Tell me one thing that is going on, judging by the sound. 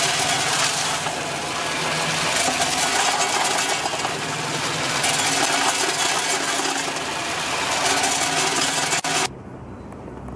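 Small hard pieces rattle and clatter steadily in a spinning machine bowl.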